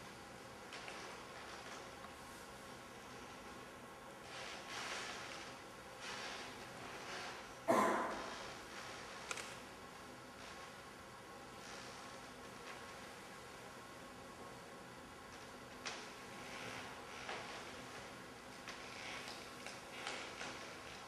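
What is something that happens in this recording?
Tulle rustles softly as a dancer moves across the floor.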